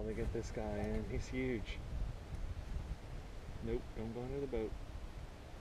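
A fishing reel clicks as line is reeled in.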